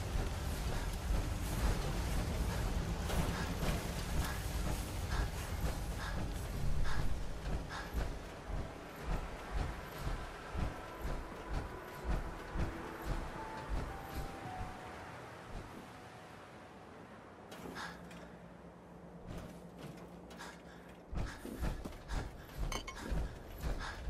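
Footsteps clank on metal grating and stairs.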